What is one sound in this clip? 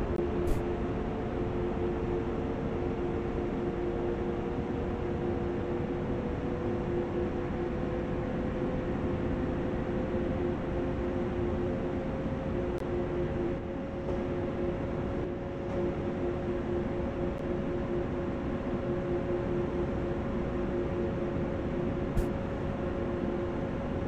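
Train wheels rumble steadily over the rails.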